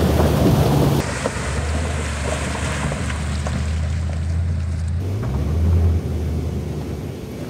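Tyres crunch over rocks and gravel.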